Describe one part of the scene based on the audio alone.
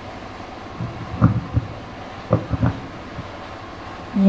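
Footsteps thud on a floor nearby.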